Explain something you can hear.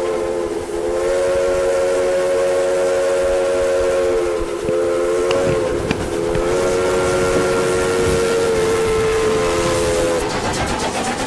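A steam locomotive whistle blows long, loud blasts.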